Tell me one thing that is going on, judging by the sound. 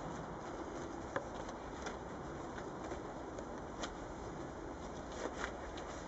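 A nylon jacket rustles close by.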